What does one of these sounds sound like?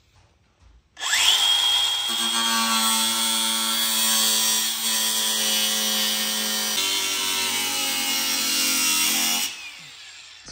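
A rotary tool whines steadily as it cuts metal.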